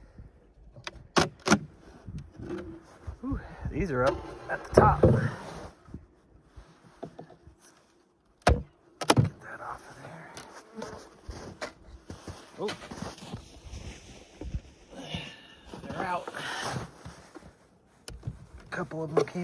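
Wooden hive parts knock against each other as they are lifted and set down.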